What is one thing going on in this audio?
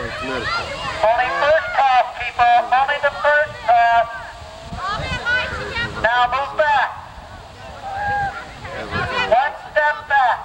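Young girls sing and chant loudly together.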